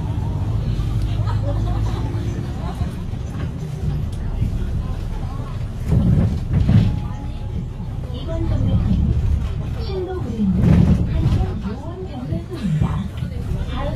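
A bus rattles and creaks as it rolls over the road.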